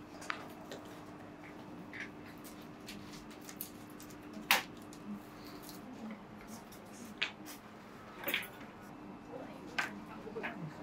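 Paper rustles softly as hands handle dried petals.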